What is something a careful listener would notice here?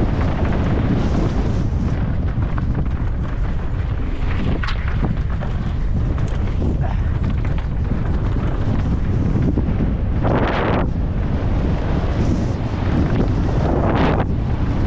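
Wind rushes loudly past a bike rider speeding downhill.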